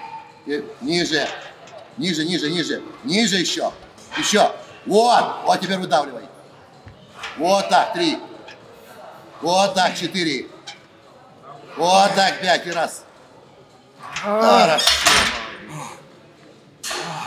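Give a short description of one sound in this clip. A man shouts encouragement loudly and close by.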